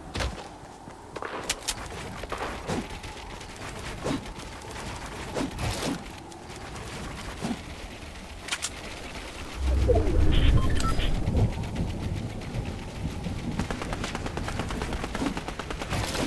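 Game building pieces snap into place with quick clicks and thuds.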